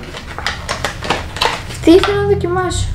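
Paper packaging crinkles and rustles in hands.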